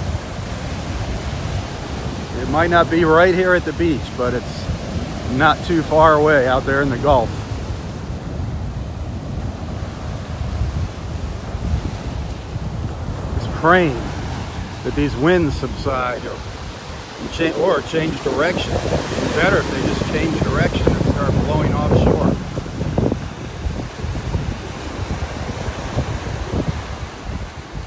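Waves break and wash up onto the shore close by.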